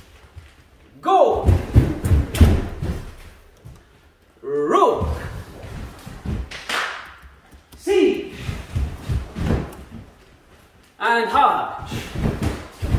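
A man shouts sharply in a slightly echoing hall.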